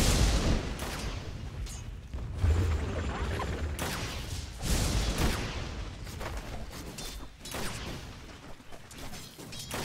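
Fantasy battle sounds of spells whooshing and impacts clashing play throughout.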